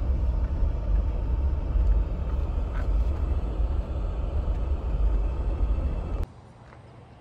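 A vehicle drives along a road with a low engine rumble and tyre noise.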